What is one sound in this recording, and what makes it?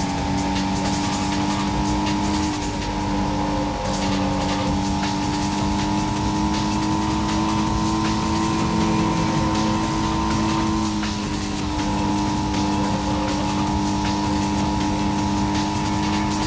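A car engine hums steadily at high revs, shifting pitch slightly.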